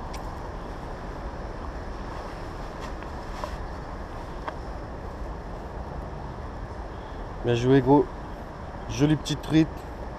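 A river rushes steadily close by.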